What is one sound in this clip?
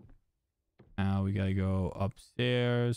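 A man speaks loudly and drawn out, close into a microphone.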